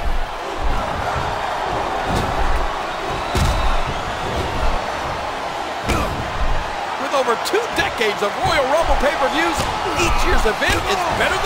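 A crowd cheers and roars steadily in a large arena.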